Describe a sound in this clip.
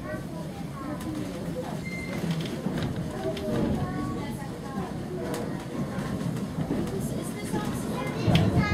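A train rumbles steadily along the track, heard from inside a carriage.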